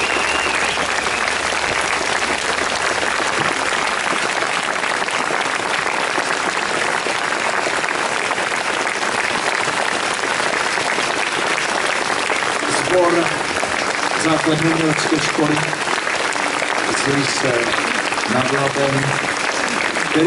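An audience applauds loudly in a large open space.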